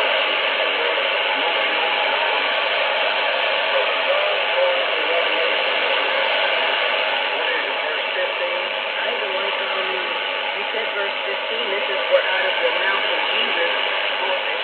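A shortwave radio plays a faint, hissy broadcast through a small loudspeaker, with static and fading.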